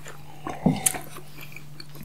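A young man gulps a drink.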